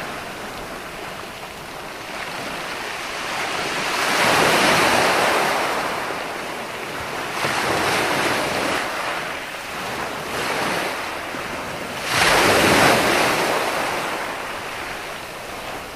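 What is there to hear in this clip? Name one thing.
Waves break and wash up onto a beach in surging rushes.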